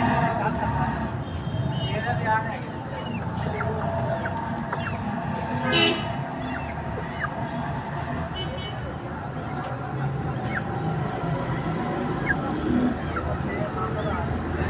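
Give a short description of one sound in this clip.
Chickens peck at a wooden floor with quick taps.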